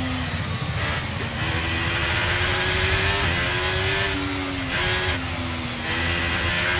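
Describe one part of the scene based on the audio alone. A racing car engine roars at high revs, climbing in pitch as it speeds up and dropping at each gear change.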